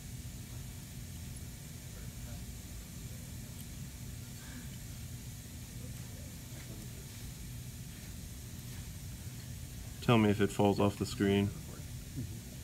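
A metal hand tool scrapes and clicks lightly against a hard tooth.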